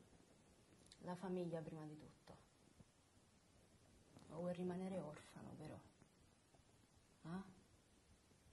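A young woman speaks calmly and quietly, close by.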